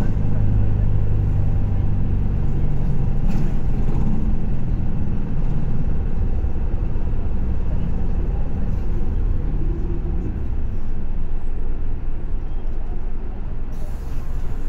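A bus engine rumbles low and steady.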